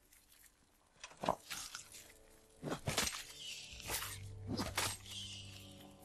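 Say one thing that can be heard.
A blade strikes a creature with wet thuds.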